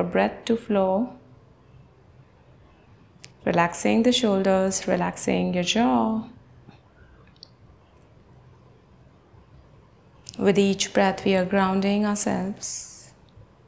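A young woman speaks calmly and slowly, close by.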